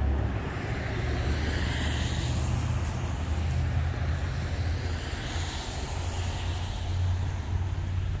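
A car swishes past on a wet road nearby.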